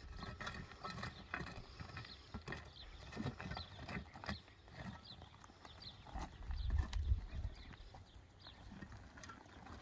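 A wheelbarrow rattles as it is pushed over rough, stony ground.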